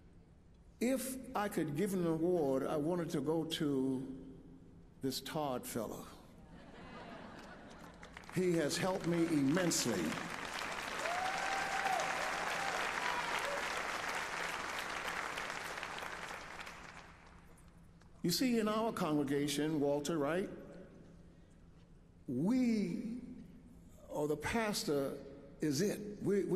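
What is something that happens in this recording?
An elderly man speaks with animation through a microphone in a large echoing hall.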